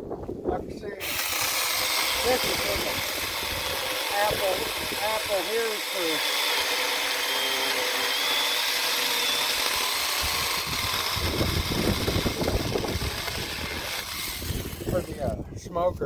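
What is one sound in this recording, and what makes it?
A small electric chainsaw whines steadily as it cuts through a log.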